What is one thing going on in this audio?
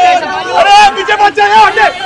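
A young man sings loudly, close by.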